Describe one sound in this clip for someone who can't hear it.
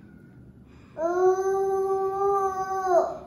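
A toddler makes a long, steady humming sound close by.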